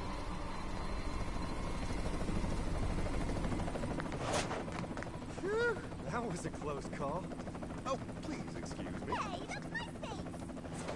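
An aircraft engine rumbles steadily.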